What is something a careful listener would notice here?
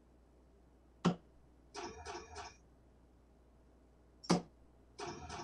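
A dart thuds into an electronic dartboard.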